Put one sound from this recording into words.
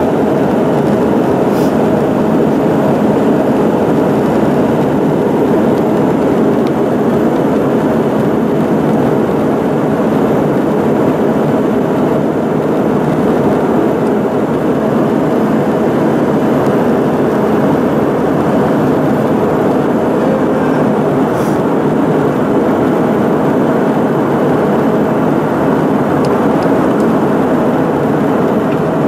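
A jet airliner's engines roar steadily in the cabin.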